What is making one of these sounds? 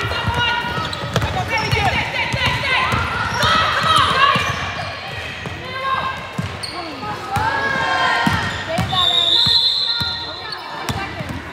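Girls shout and call out during play.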